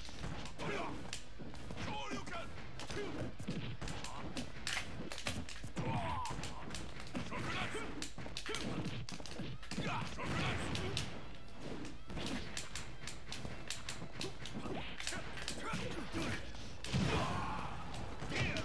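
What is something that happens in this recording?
Punches and kicks land with sharp game hits.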